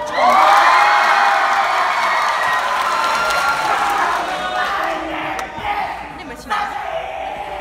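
A young person sings in a large echoing hall.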